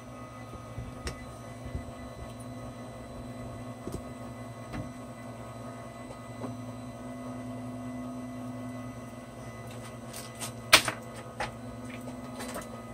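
The motors of a machine hum and whine steadily.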